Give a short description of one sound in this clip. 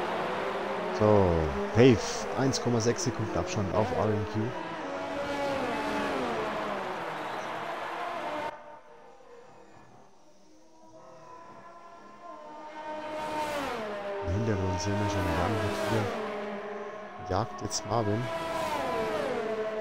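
Racing cars scream past at high speed.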